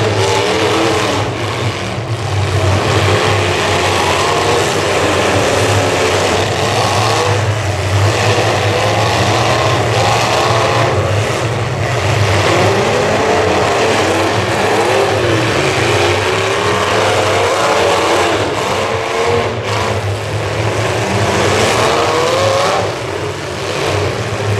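Car engines roar and rev loudly in an outdoor arena.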